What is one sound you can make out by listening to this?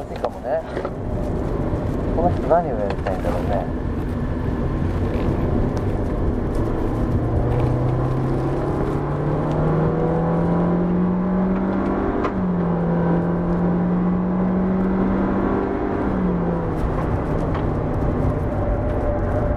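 Tyres and wind roar steadily inside a moving car.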